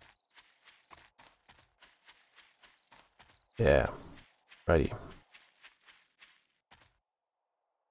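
Footsteps rustle steadily through dry grass.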